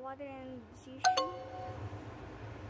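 A phone app plays a low error tone.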